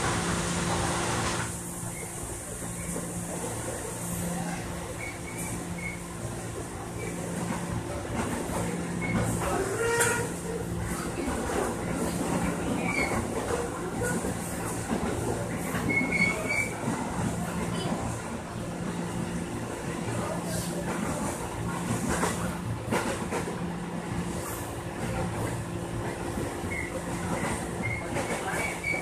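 Train wheels clatter and knock over rail joints.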